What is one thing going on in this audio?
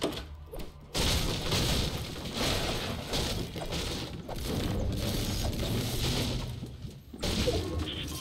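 A pickaxe strikes wood over and over with sharp thuds and cracks.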